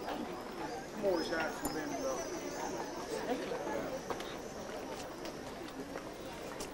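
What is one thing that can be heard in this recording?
An older woman talks close by.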